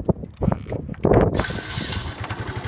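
A motorcycle engine starts up.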